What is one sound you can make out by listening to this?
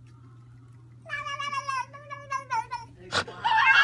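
A cat meows repeatedly.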